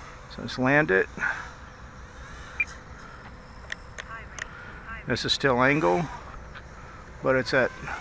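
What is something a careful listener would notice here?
A small drone's motors whine steadily in the distance.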